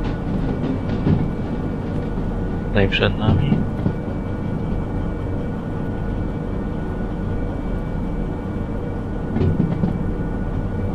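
Rain patters steadily against a window.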